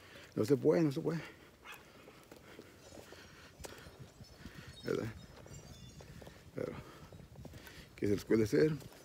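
A middle-aged man talks close up in short bursts, outdoors.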